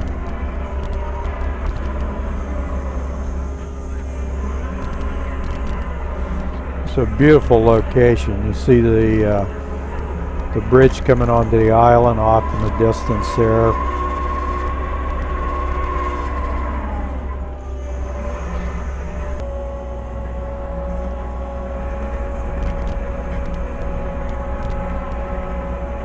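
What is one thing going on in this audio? A skid steer engine rumbles steadily close by.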